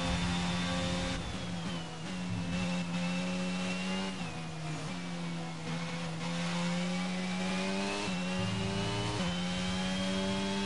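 A racing car engine whines loudly, dropping in pitch with each downshift and rising again as it speeds up.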